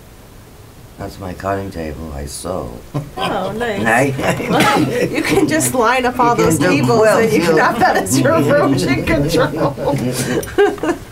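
Several men and women talk over one another with animation.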